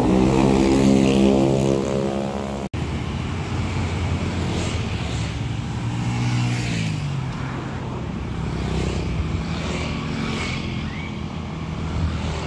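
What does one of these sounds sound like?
Motorbike engines buzz past close by.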